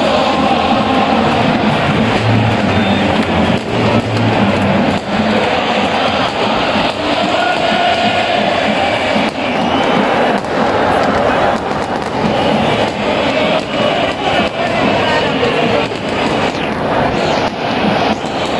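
A huge football crowd chants and sings in a large open stadium.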